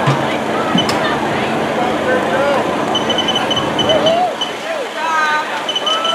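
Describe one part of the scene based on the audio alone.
A crowd of men and women cheers and calls out outdoors.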